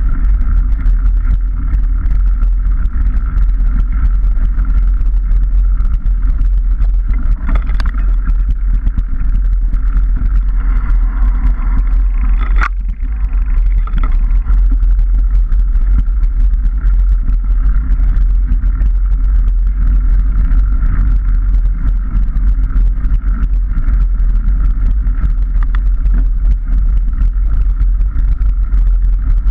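Tyres bump and rattle over a rough dirt track.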